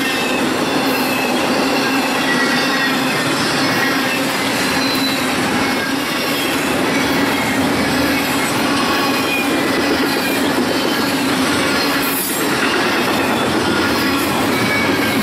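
A long freight train rumbles past close by, wheels clattering on the rails.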